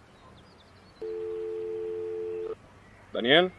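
A phone's ringing tone sounds in a steady burst.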